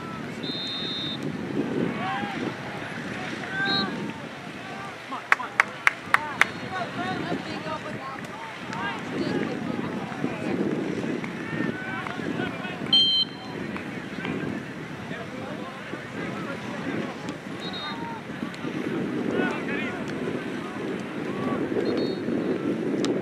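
Young players and spectators shout and call out across an open outdoor field.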